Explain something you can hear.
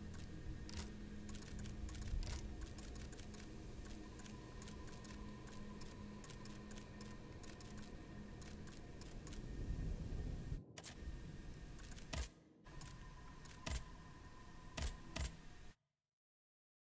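Soft interface clicks tick quickly as a menu is scrolled.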